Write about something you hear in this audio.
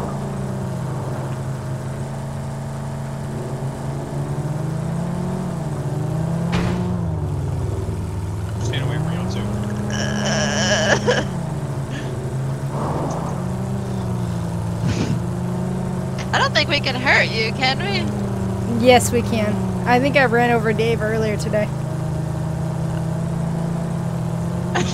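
A vehicle engine drones steadily, rising and falling in pitch as it revs.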